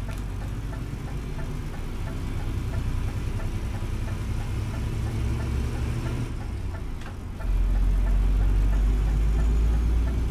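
A truck engine rumbles steadily as the truck turns.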